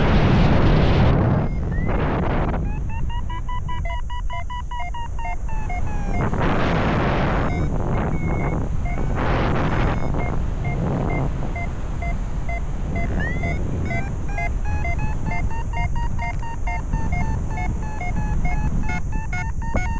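Strong wind rushes and buffets past, outdoors high in the open air.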